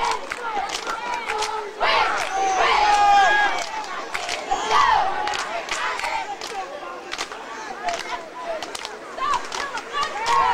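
Men on the sidelines talk and call out nearby, outdoors.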